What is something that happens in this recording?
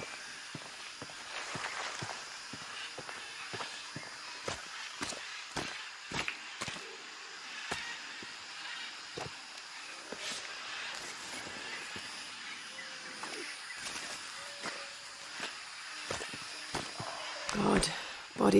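Footsteps crunch over dry leaves and twigs.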